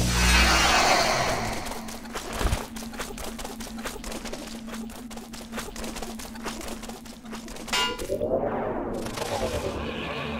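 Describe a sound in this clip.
A sweeping magic blast whooshes.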